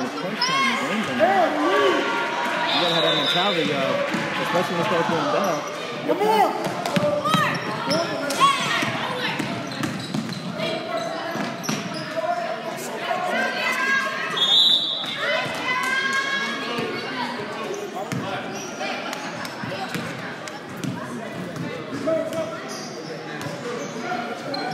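Children shout and call out in a large echoing gym.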